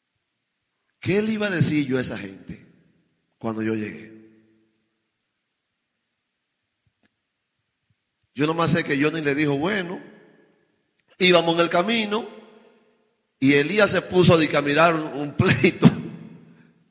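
A man preaches with passion into a microphone, in bursts with long pauses.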